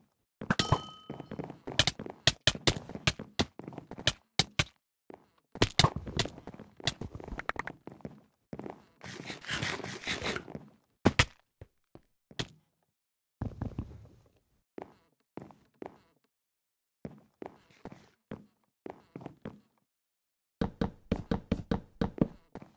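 Blocks are placed with quick, soft knocks, in bursts.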